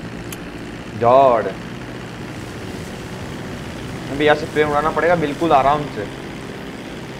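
A young man speaks briefly into a microphone, with animation.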